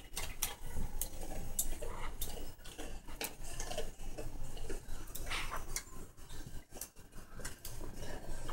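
A cockatoo's claws click and tap on a hard floor.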